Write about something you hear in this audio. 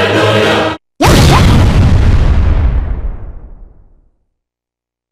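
A loud cartoon explosion booms and rumbles away.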